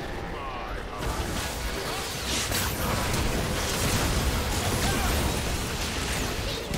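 Magic spells blast and crackle in a busy battle.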